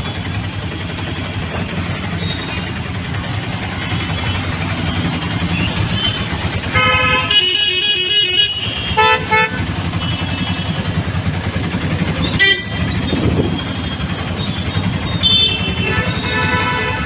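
An auto-rickshaw engine rumbles steadily up close.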